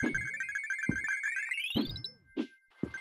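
Coins chime in quick succession.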